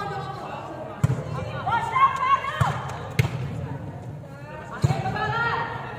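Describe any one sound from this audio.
A volleyball thumps off players' hands and arms in a large echoing hall.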